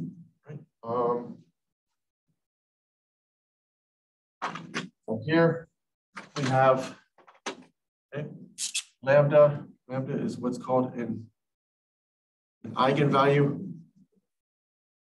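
A man lectures calmly through a microphone, in short phrases with pauses.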